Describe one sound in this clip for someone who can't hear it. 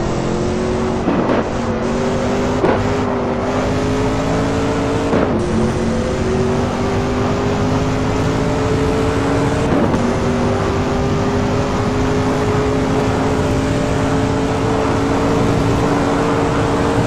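A racing car engine roars at high revs, its pitch climbing through the gears.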